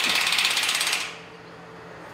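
An impact wrench rattles loudly against a bolt.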